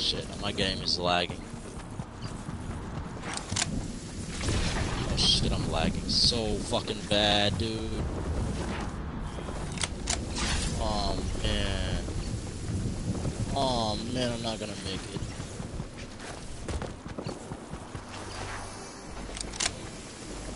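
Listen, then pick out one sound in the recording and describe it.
Footsteps patter quickly over grass and earth.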